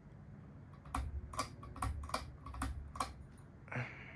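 A pull chain clicks several times as a hand tugs it.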